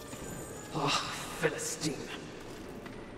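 A young man talks with animation, close to a headset microphone.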